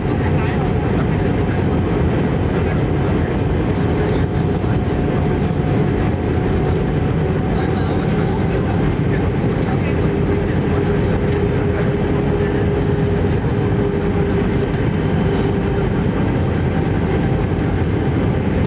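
Jet engines and rushing air drone steadily inside an airliner cabin.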